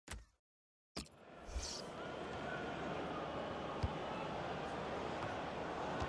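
A stadium crowd murmurs and hums steadily.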